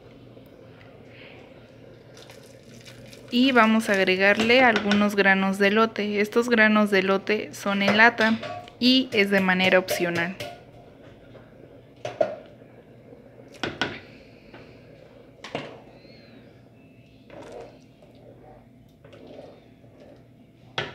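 Soup simmers and bubbles gently in a pot.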